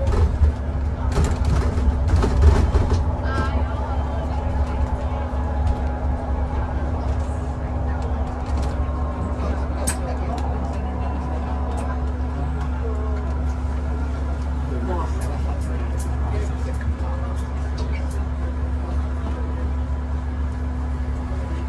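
The bus rattles and creaks as it drives along.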